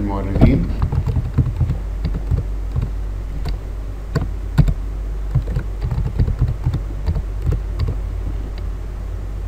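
Keys click on a computer keyboard as someone types.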